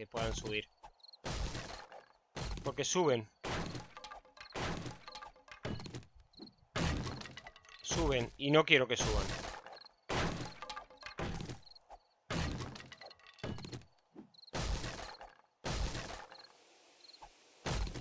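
An axe chops into wood with repeated knocks.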